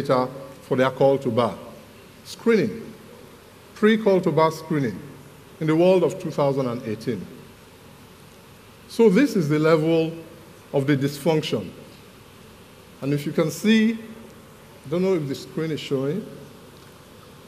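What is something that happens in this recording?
A man speaks calmly into a headset microphone, heard through loudspeakers in a large hall.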